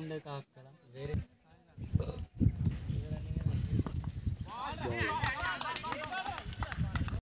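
Several men call out and chat with animation nearby.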